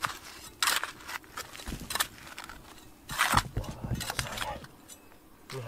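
A small shovel scrapes and digs into loose gravel and dirt.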